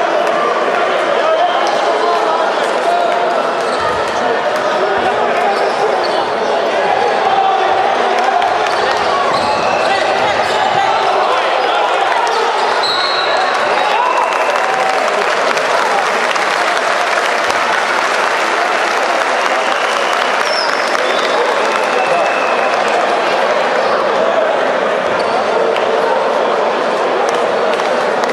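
Basketball shoes squeak on a wooden court.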